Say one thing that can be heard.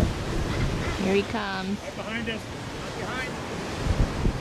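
A seabird calls in short cries.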